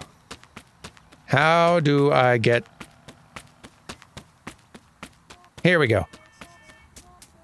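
Quick light footsteps patter on pavement.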